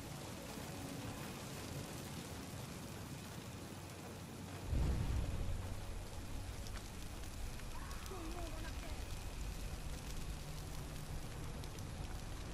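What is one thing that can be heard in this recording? Fires crackle and roar steadily.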